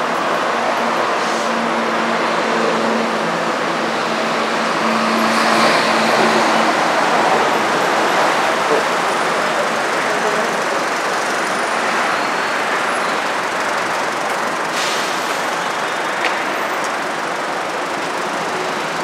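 Heavy city traffic rumbles and hisses steadily nearby.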